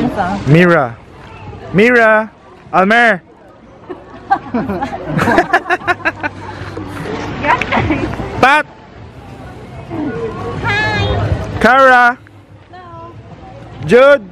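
Young women laugh and chatter nearby.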